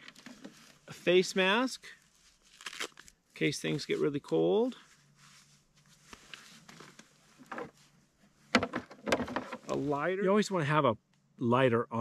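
A man talks calmly and close by.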